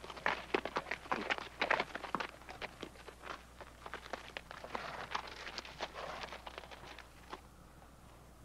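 Horses' hooves clop and crunch on gravel.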